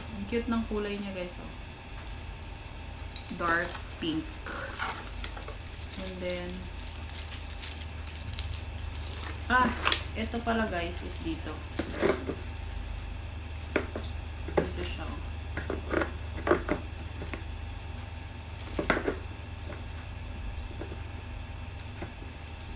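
Cardboard and plastic packaging rustle and tap as items are unpacked.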